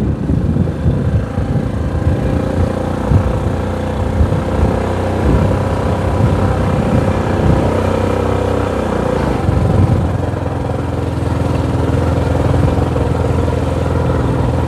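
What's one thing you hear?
A vehicle engine hums steadily while driving along a road.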